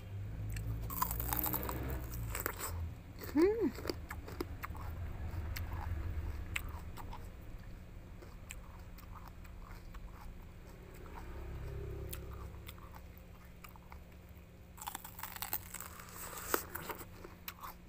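A young woman bites into a crisp vegetable with a crunch.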